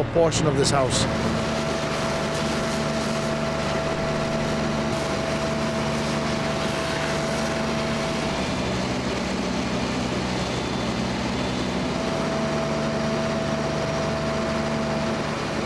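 A fire engine's motor rumbles steadily.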